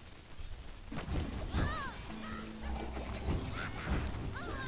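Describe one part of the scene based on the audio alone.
Magic blasts whoosh and crackle in quick bursts.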